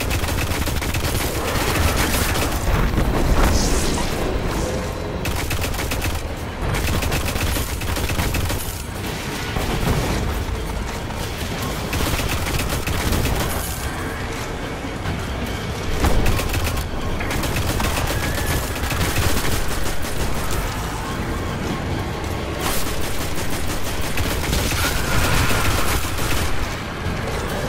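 Rifle shots fire rapidly and loudly, over and over.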